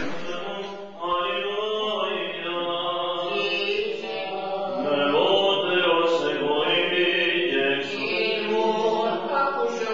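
A man chants in a slow, echoing voice.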